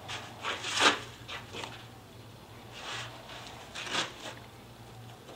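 A gloved hand rubs and scrapes over rough wood.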